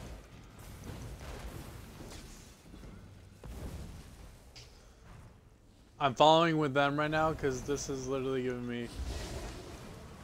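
Magic spells crackle and whoosh during a fight.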